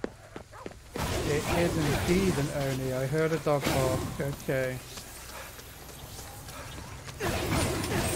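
Magic energy blasts crackle and whoosh in bursts.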